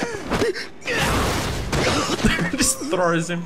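A body thuds heavily onto the ground.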